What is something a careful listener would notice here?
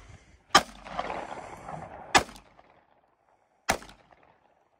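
Gunshots crack sharply outdoors.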